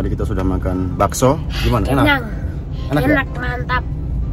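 A boy laughs loudly.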